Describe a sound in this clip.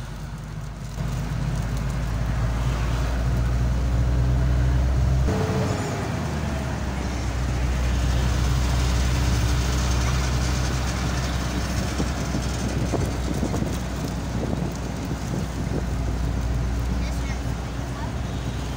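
Wind rushes loudly past an open car window.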